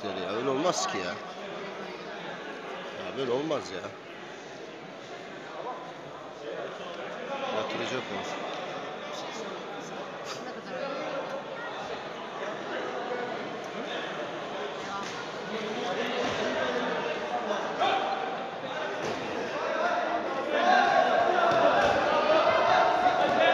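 A crowd of spectators talks and calls out in an echoing sports hall.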